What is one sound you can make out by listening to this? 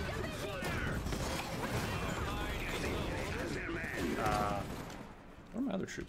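Gunfire and explosions rumble and crackle in a battle.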